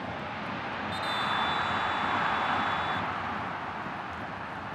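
A stadium crowd roars in celebration.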